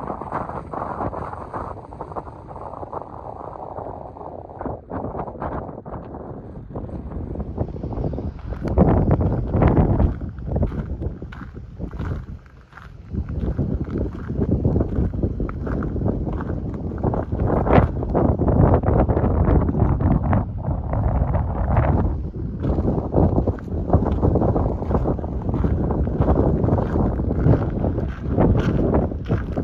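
Wind blows outdoors, rumbling and buffeting against the microphone in gusts.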